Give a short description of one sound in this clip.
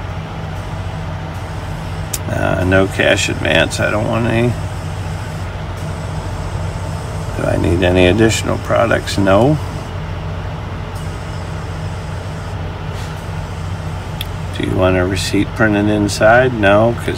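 A vehicle engine idles with a steady low hum.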